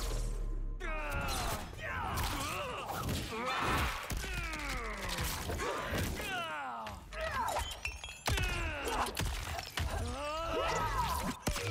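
Heavy blows land with hard thuds.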